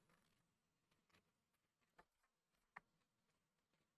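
A page of a magazine is turned over.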